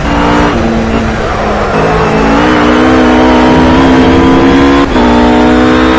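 A GT3 race car engine drops in pitch as it shifts up a gear.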